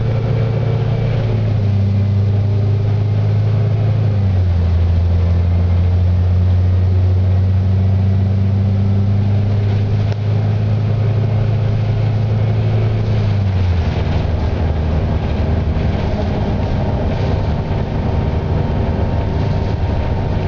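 A bus engine hums and drones steadily, shifting pitch as the bus drives.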